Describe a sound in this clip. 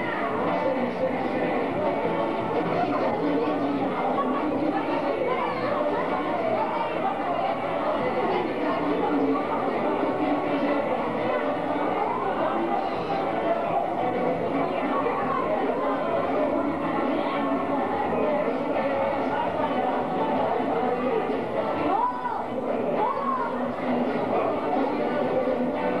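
A crowd of adults and children chatter at once in a room that echoes.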